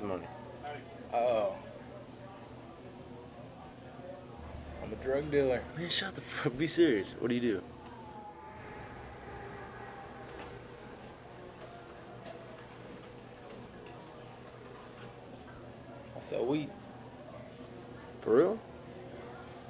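A young man speaks slowly in a low, relaxed voice nearby.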